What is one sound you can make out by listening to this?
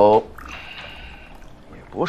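Water pours into a glass.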